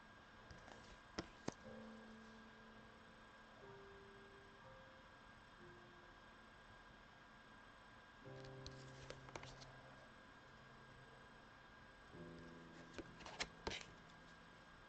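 Playing cards rustle and snap as they are flipped and shuffled in the hands.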